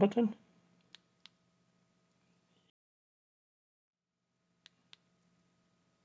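A remote control button clicks softly.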